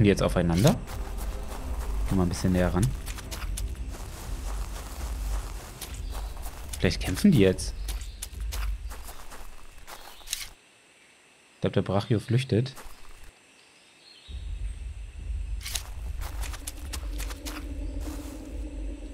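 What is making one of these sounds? Footsteps crunch steadily on dry dirt and grass.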